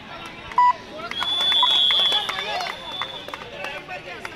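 A whistle blows sharply.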